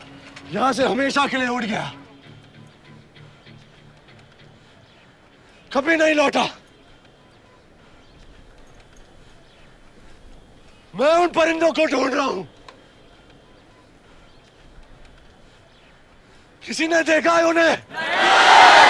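A young man sings out loud, drawn-out phrases with pauses between them.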